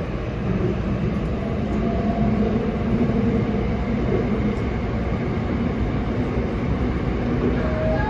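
A subway train rumbles steadily along the track.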